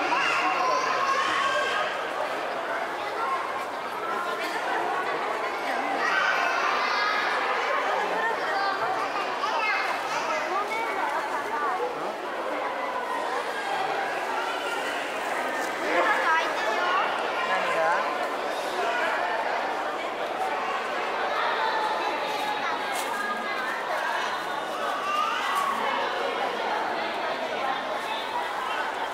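A crowd of people chatters all around in a large echoing hall.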